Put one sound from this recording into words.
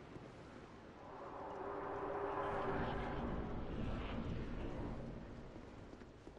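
A low rushing whoosh swells and fades.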